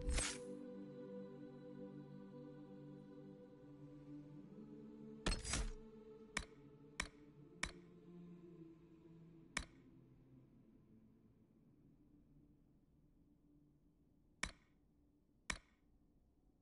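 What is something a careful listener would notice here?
Short menu clicks sound one after another.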